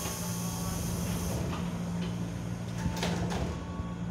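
Train doors slide shut.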